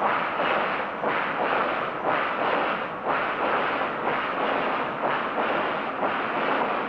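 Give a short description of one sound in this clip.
A steam locomotive chuffs steadily in rhythmic puffs as it passes.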